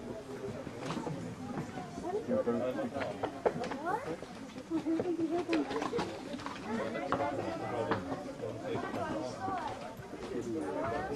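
A pony's hooves thud softly on soft ground.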